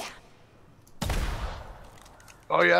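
A gun fires once with a heavy boom.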